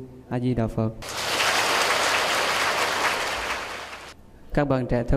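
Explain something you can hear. A large audience applauds.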